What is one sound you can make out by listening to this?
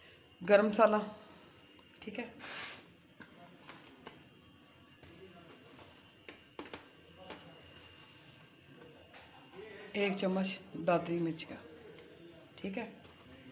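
Spices are sprinkled onto raw meat in a metal bowl.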